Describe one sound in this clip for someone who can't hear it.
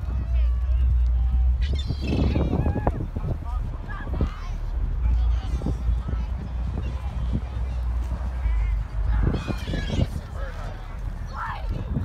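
Seagulls cry overhead.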